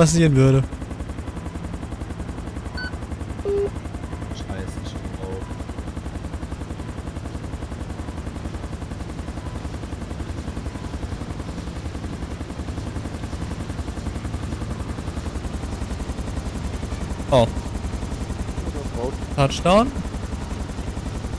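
A helicopter's rotor thumps steadily as it hovers and lands.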